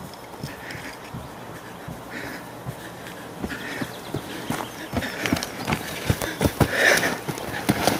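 A man breathes heavily while running.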